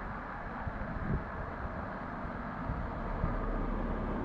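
A car approaches up a road.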